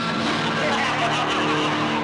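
A young woman screams in distress.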